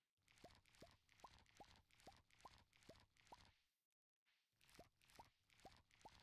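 A game character's footsteps rustle through leafy crops in quick, even steps.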